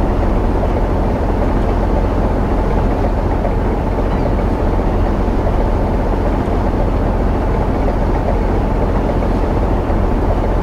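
Water churns and rushes in a boat's wake.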